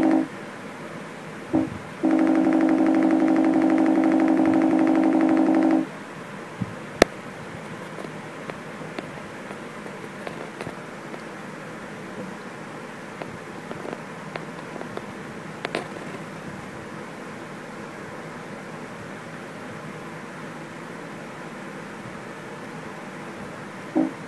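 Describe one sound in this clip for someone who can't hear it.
Keyboard keys click softly under a kitten's paws.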